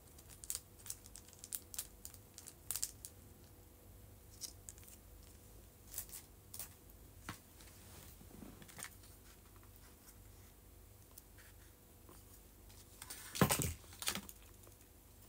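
Small objects tap and click sharply close by.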